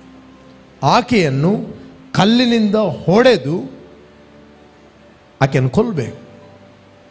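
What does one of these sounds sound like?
A man speaks forcefully into a microphone, in short emphatic bursts.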